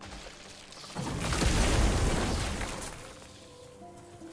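A fiery explosion bursts and roars.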